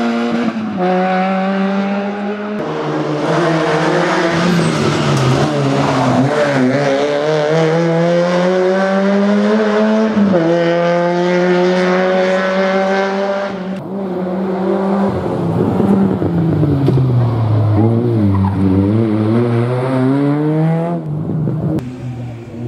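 A small car's engine revs hard and roars, rising and dropping in pitch as it changes gear.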